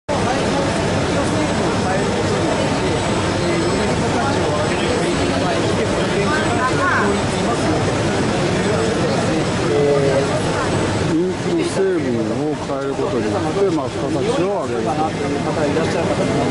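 A crowd murmurs throughout a large busy hall.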